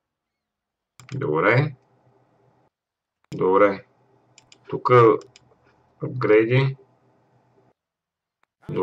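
A man speaks calmly into a close microphone, in short bursts.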